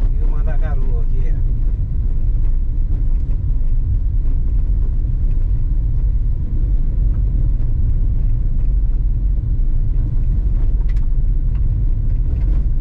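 Tyres crunch and rattle over a dirt road.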